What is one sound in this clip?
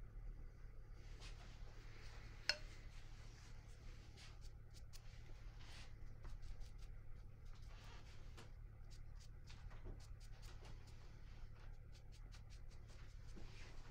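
A brush dabs and scrapes softly on paper.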